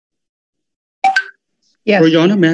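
A girl speaks over an online call.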